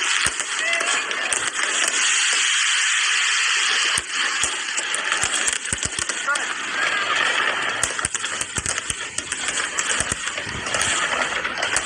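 Fireworks crackle and sizzle in the air.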